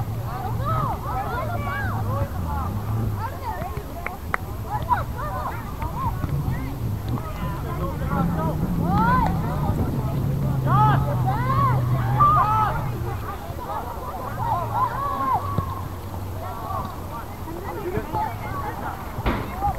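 Adult spectators talk casually nearby outdoors.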